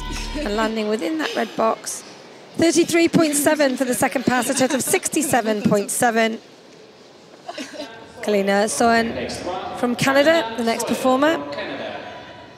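Two women laugh and talk excitedly close by.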